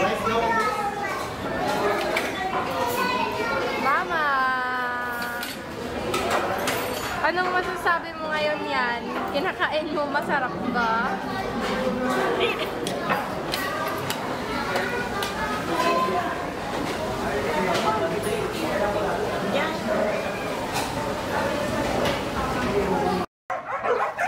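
Other diners chatter in the background of a busy room.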